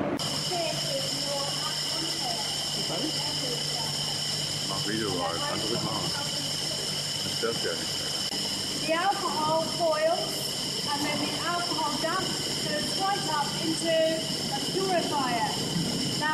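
A woman speaks with animation close by, in a large echoing hall.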